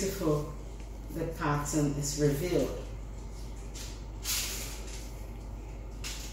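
Hands rustle and press dough on a tray.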